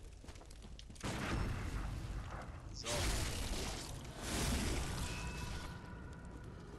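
A blade slashes and strikes flesh with a wet thud.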